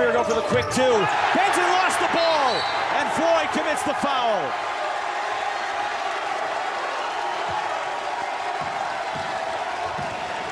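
A large crowd roars and cheers in an echoing arena.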